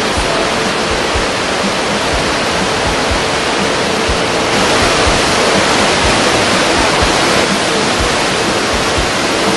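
A fast river rushes and roars loudly over rapids.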